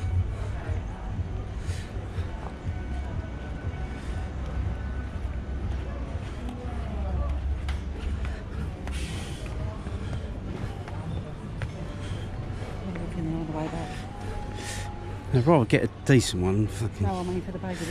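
Footsteps tap on paving.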